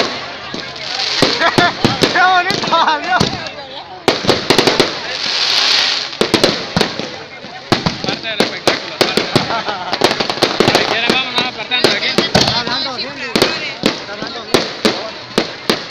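Fireworks hiss and whistle as they shoot up.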